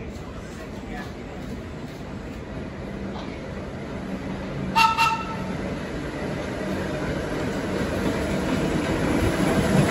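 A subway train approaches along the outdoor track, its rumble growing louder.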